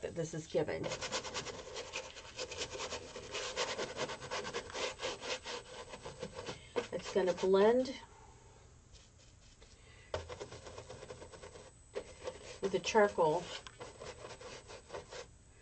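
A brush scrapes and swishes across a canvas.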